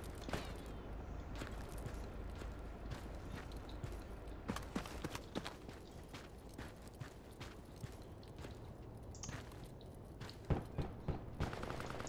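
Footsteps crunch on dirt at a steady walking pace.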